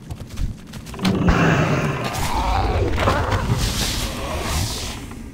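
Weapon blows and magic bursts ring out in a fight with a monster.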